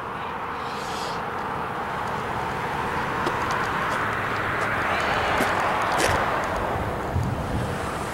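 A car drives slowly past on pavement.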